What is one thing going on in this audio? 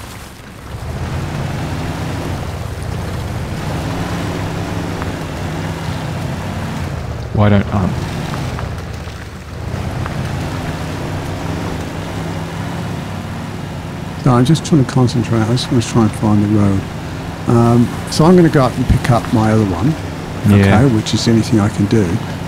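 A truck engine rumbles steadily at low revs.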